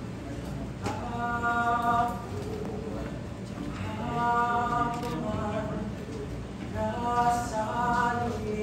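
A young man sings out with a long held voice.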